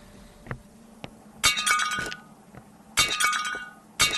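A glass bottle clinks as it is picked up.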